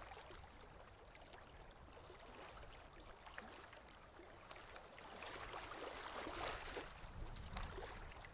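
Small waves lap gently close by.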